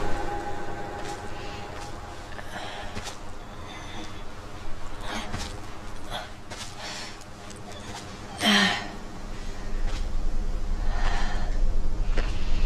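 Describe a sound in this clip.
Footsteps rustle and crunch through dry undergrowth.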